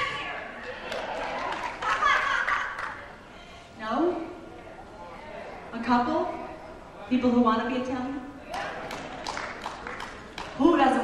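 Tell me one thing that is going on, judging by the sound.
A woman sings through a microphone.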